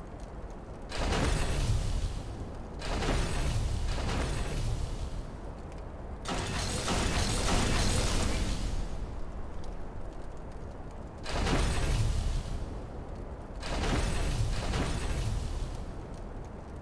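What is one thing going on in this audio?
Heavy stone platforms grind and rumble as they slide out and back.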